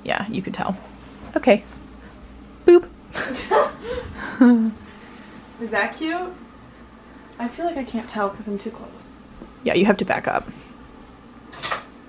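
A young woman talks calmly close by.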